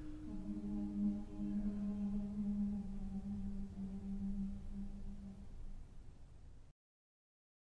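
A large mixed choir sings a held chord that slowly fades away.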